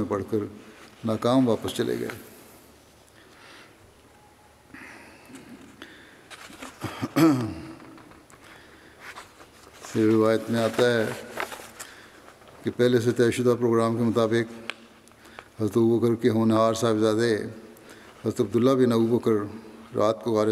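An elderly man speaks slowly and solemnly into a microphone in a large echoing hall.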